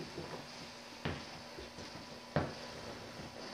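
A ball bounces and rolls across a hard floor.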